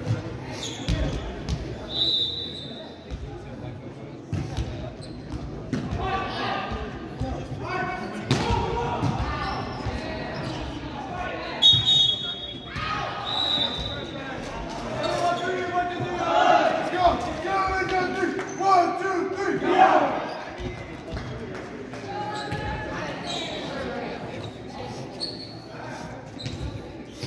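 Young men talk and call out in a large echoing gym.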